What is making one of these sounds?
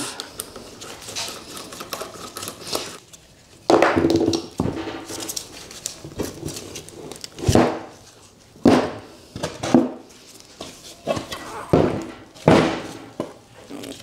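Heavy metal parts clunk on a table.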